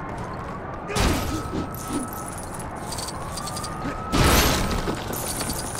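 Blocks smash apart with loud bursts.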